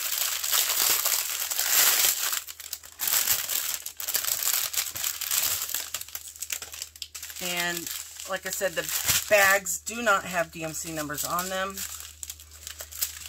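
Plastic wrapping crinkles and rustles as hands handle a packet.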